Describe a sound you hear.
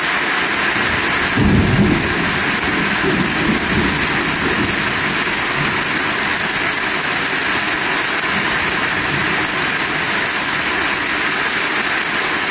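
Rainwater splashes onto the ground from a roof.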